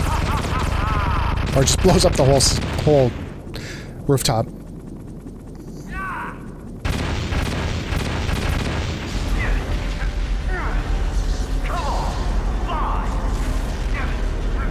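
A helicopter's rotor thumps.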